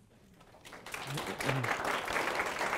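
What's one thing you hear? An older man speaks briefly and cheerfully into a microphone in a room.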